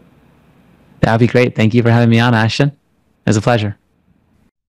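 A young man laughs and talks over an online call.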